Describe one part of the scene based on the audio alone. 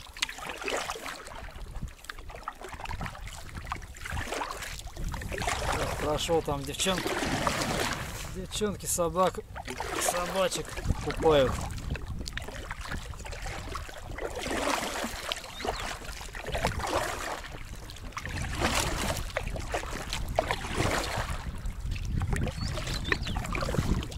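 A paddle splashes in water with each stroke.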